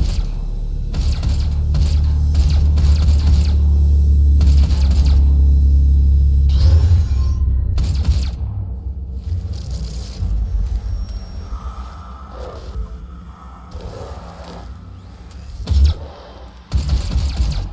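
Heavy gunfire blasts in loud, repeated bursts.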